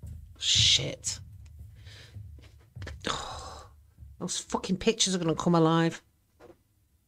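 A middle-aged woman talks with animation close to a microphone.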